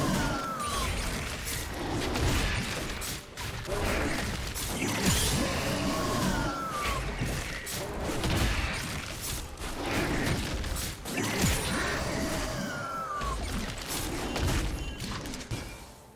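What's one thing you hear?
Blades clash and strike again and again in a fight.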